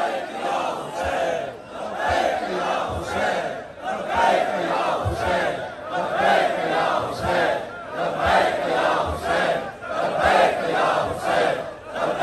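Many hands beat on chests with rhythmic dull thumps.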